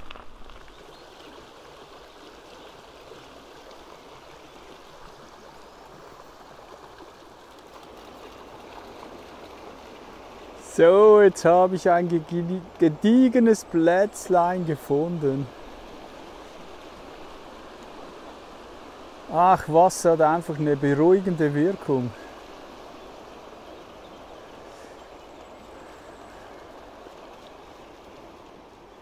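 A river flows and ripples over stones.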